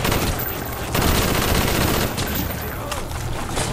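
An explosion bursts with a roar.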